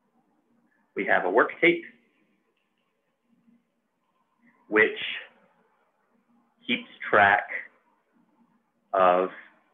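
A man speaks calmly in short phrases into a close microphone, with pauses.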